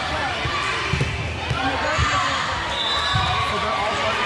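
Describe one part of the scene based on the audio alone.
A volleyball is hit with a smack.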